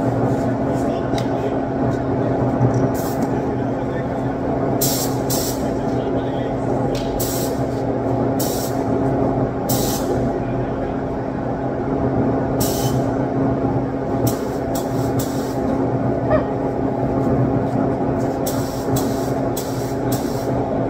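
A ventilation fan hums steadily.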